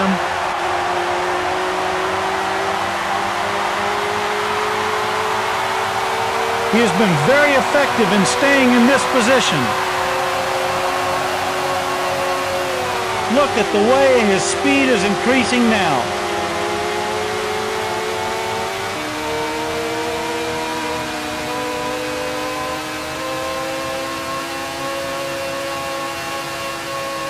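A racing car engine whines steadily at high revs.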